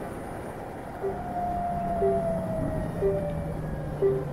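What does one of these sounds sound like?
A motorcycle engine revs and slows at a junction.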